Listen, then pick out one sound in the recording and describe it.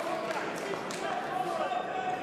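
A man calls out loudly in a large echoing hall.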